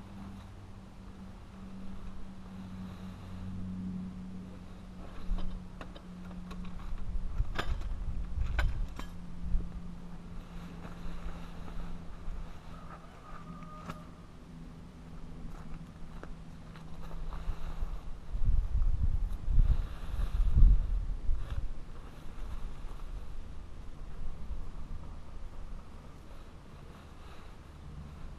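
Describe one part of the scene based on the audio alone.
A plastic tarp rustles and flaps as it is dragged over grass.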